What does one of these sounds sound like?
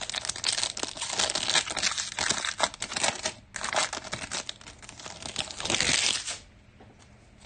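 A foil wrapper crinkles and tears loudly up close.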